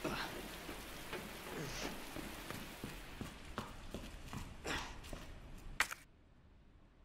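Footsteps climb hard stairs.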